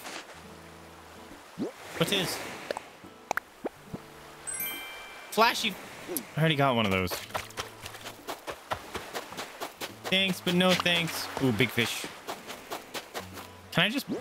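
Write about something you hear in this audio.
Soft game music plays with gentle tones.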